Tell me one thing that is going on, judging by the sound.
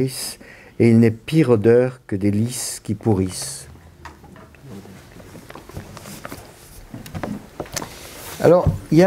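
An elderly man speaks calmly into a nearby microphone, with pauses.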